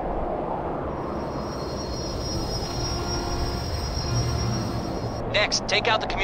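A spaceship roars past overhead.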